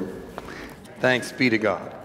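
Paper rustles as a man folds a sheet.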